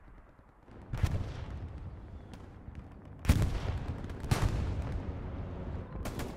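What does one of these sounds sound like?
Artillery shells explode with heavy booms.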